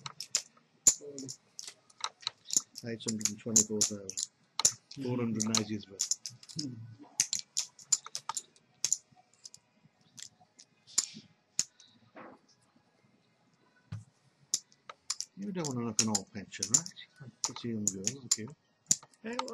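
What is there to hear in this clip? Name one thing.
Poker chips click and clatter on a table.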